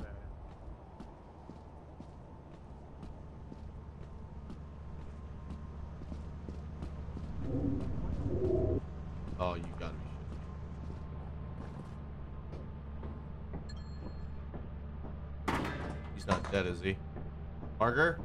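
Footsteps tread steadily on hard ground and metal.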